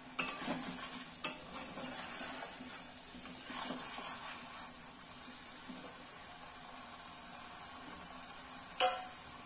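Chicken pieces sizzle in oil in a wok.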